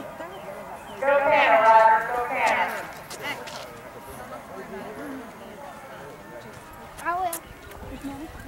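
A woman calls out loudly nearby.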